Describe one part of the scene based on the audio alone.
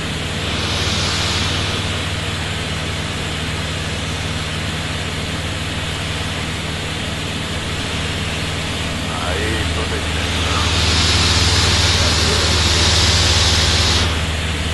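A helicopter engine drones and its rotor thrums steadily.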